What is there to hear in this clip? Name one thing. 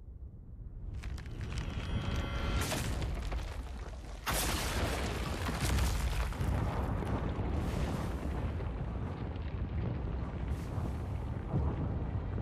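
A stone bridge cracks and crumbles with a loud rumbling roar.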